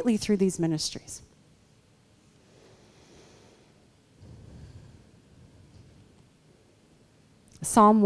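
A woman speaks through a microphone, heard from the back of a room, pausing between phrases.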